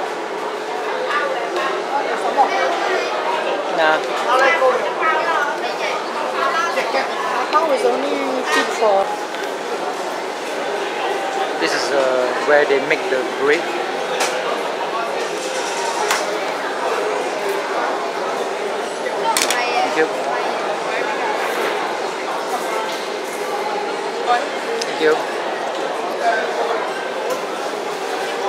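Several people talk at once in a busy, lively room.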